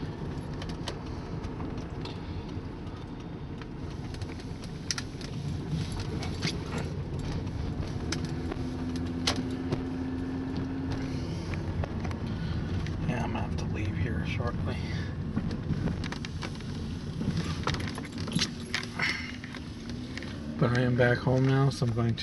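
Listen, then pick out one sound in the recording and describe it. A car drives along a road, heard from inside.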